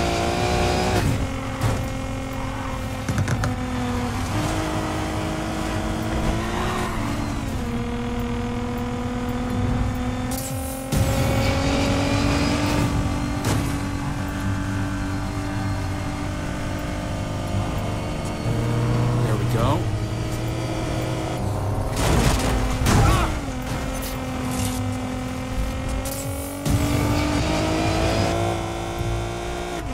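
A car engine roars steadily at high speed, its pitch shifting with the gears.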